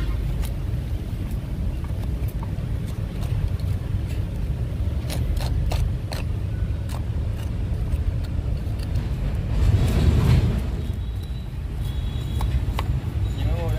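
Fingers rub and crumble dry soil and roots close by.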